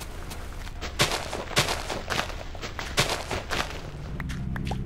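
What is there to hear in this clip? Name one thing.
A shovel digs into dirt with quick crunching thuds.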